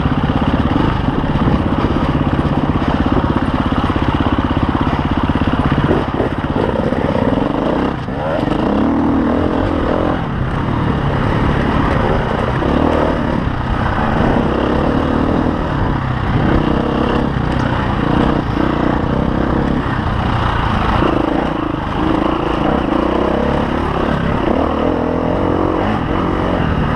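Stones and dirt crunch under the tyres.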